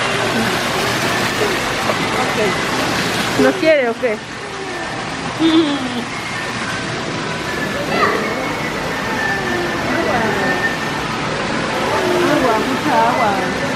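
A small waterfall splashes steadily.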